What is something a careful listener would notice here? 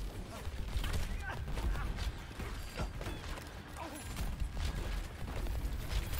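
Low rumbling booms and explosions thud throughout.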